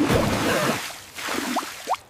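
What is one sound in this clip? Water splashes and sprays.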